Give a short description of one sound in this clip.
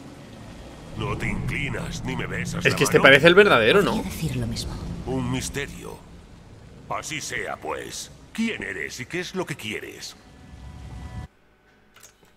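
A man speaks with animation, heard close up.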